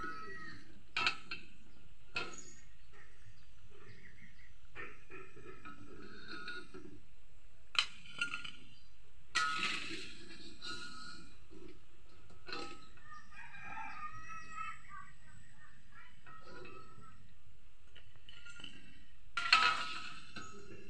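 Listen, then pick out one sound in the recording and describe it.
A metal ladle clinks against a metal pan.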